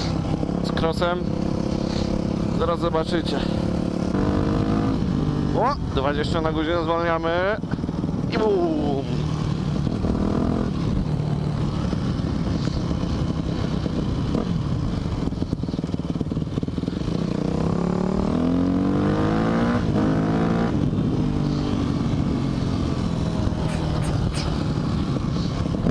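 A motorbike engine drones and revs up and down as it rides.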